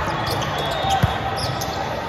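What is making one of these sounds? A hand strikes a volleyball with a sharp slap.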